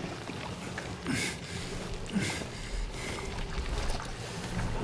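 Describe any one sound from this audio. Clothing rustles and scuffs as a man crawls along the floor.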